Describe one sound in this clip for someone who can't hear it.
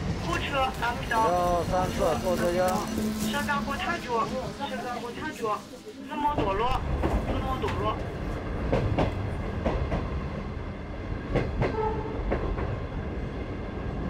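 A train's wheels rumble steadily along the tracks.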